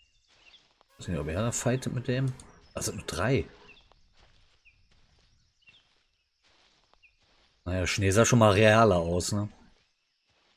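A man talks calmly and close up, as if through a microphone.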